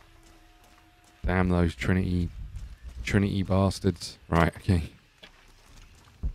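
Footsteps crunch softly on leaves and dirt.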